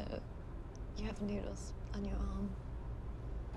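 A young woman answers hesitantly, close by.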